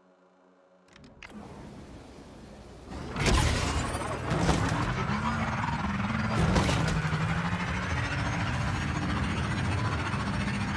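A motorbike engine roars and revs.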